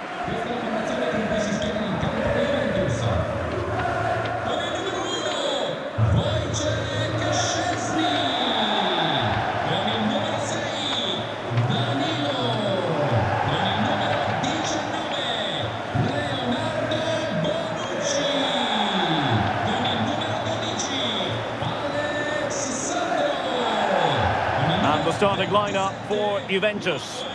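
A large crowd cheers and chants in a stadium.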